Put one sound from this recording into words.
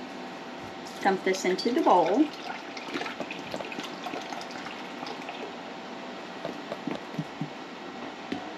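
Soda glugs and splashes as it is poured into a bowl.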